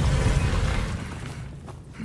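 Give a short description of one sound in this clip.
An older man speaks in a low, grim voice.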